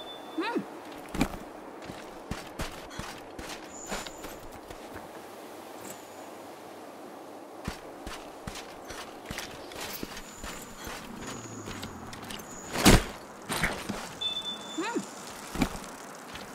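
Footsteps thud quickly on sand and rock.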